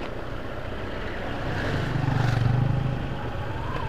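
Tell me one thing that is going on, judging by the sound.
A van's engine rumbles as it drives past close by.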